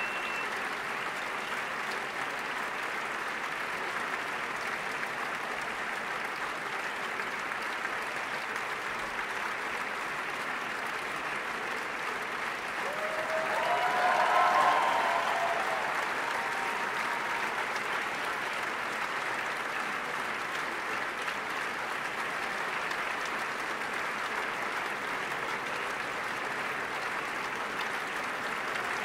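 A large crowd applauds steadily in a big echoing hall.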